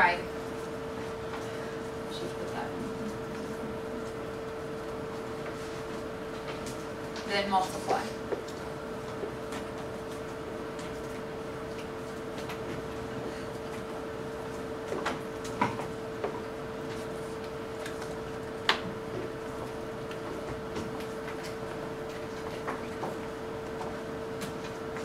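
A projector hums steadily.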